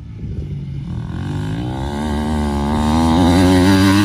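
Engines of several dirt bikes drone in the distance.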